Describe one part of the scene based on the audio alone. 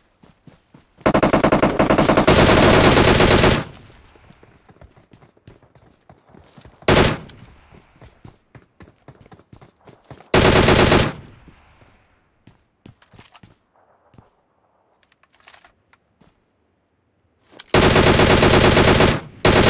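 A machine gun fires in loud, rapid bursts.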